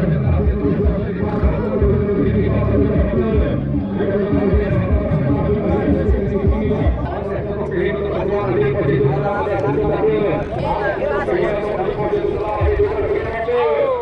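Horses gallop with hooves thudding on soft dirt.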